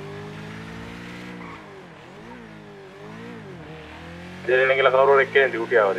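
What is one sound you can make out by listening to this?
A motorcycle engine hums steadily, rising and falling in pitch as it speeds up and slows down.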